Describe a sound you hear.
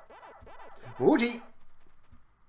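A young man speaks briefly and loudly close to a microphone.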